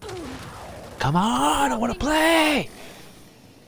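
A man shouts loudly into a close microphone.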